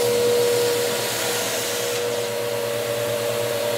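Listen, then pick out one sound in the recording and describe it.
A vacuum cleaner's brush rolls across a hard floor.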